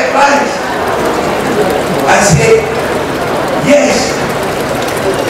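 A middle-aged man speaks steadily into a microphone over a loudspeaker.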